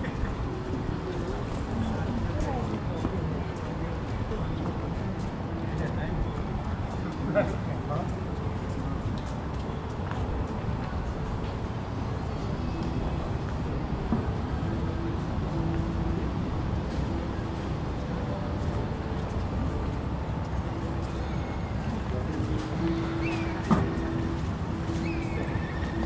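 Distant voices of people murmur outdoors.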